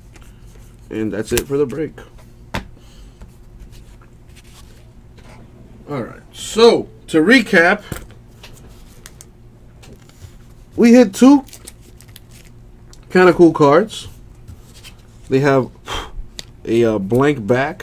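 Trading cards rustle and slide softly as they are handled.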